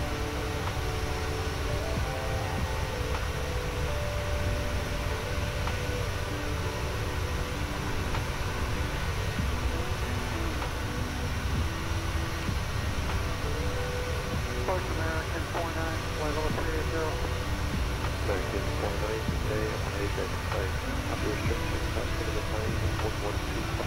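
A steady low jet engine drone hums throughout.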